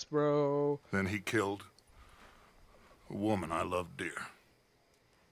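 A man speaks slowly in a low, gravelly voice.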